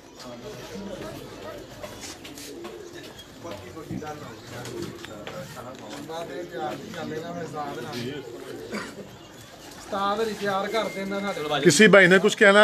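A group of men talk together outdoors, close by.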